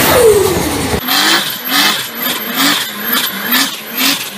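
A drifting car's engine revs up and down in quick bursts outdoors.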